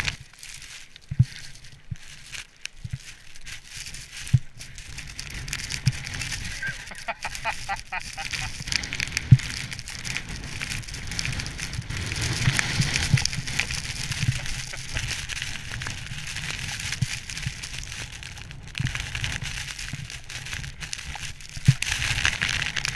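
Skis scrape and crunch over snow.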